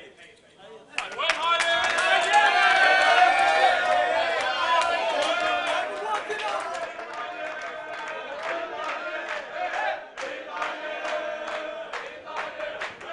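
A crowd of men cheers and chants loudly.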